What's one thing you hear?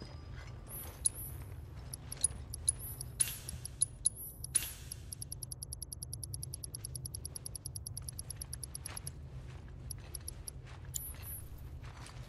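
Menu selection clicks tick rapidly.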